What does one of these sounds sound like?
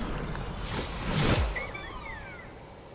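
A glider snaps open with a whoosh.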